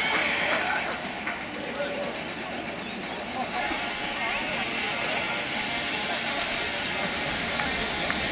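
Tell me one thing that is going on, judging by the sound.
A river flows steadily over stones.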